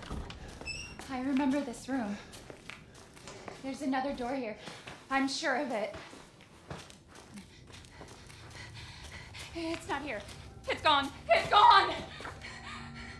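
A young woman speaks in a tense, worried voice, growing upset.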